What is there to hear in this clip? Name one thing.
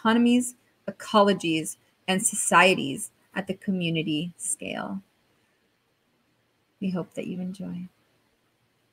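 A young woman speaks warmly and with animation through an online call.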